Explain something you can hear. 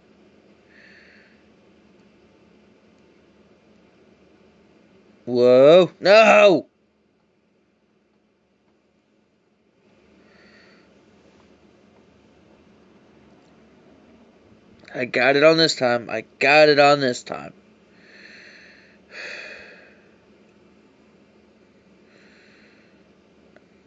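A man speaks quietly and casually into a nearby microphone.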